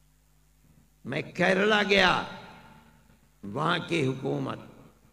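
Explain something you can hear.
An elderly man speaks forcefully into a microphone, heard through loudspeakers with an echo.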